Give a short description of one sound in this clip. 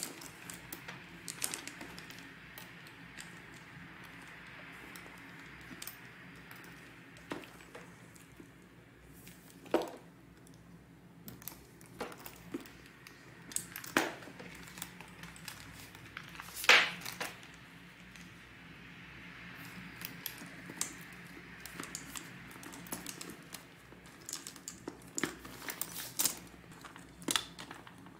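A metal clasp clicks and jingles.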